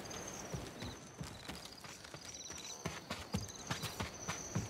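Footsteps creak and thud on wooden boards.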